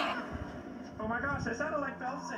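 A cartoon boy speaks anxiously through a television speaker.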